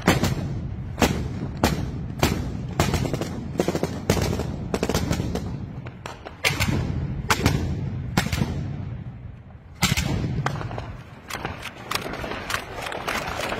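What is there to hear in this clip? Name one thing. Gunshots crack out repeatedly, echoing between buildings.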